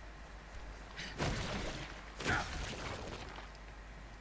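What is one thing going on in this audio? Heavy blows and slashes land in a close struggle.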